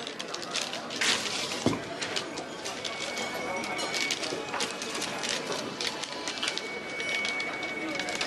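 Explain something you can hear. Wrapping paper rustles and crinkles.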